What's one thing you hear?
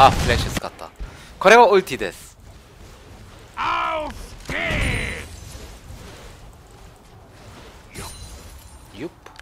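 Magic spells crackle and whoosh during a fantasy battle.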